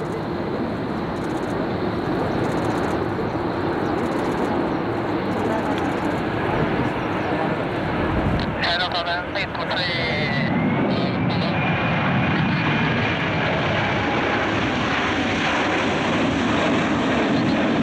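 A jet airliner's engines roar loudly overhead and grow louder as it passes close by.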